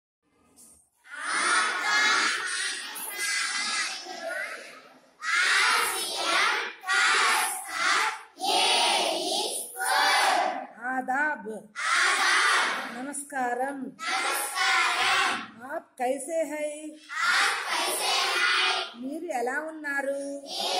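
A group of children chants together loudly in unison, close by.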